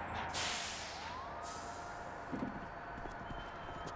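A bus door hisses and slides open.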